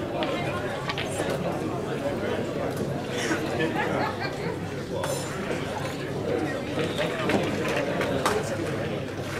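Pool balls click together at nearby tables in a large hall.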